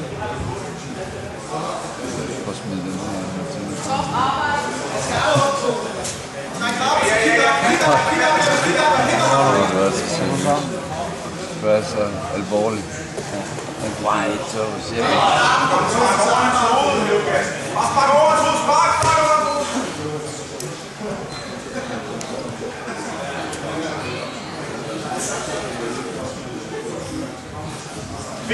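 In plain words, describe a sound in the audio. A crowd of spectators murmurs and chatters in a large echoing hall.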